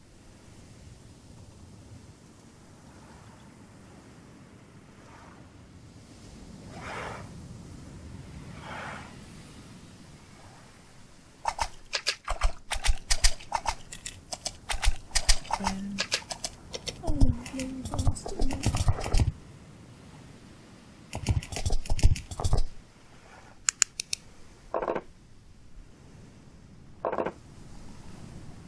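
Gentle waves lap at the shore.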